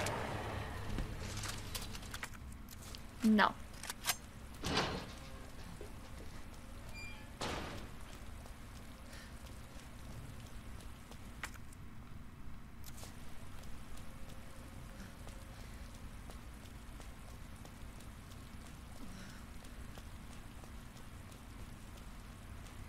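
Footsteps walk on hard pavement.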